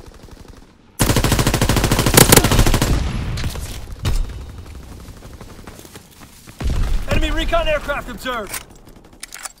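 A submachine gun fires rapid, loud bursts.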